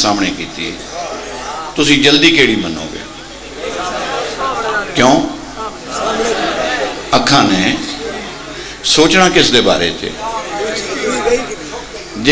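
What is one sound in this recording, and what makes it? A man speaks passionately into a microphone through a loudspeaker, his voice rising to loud outbursts.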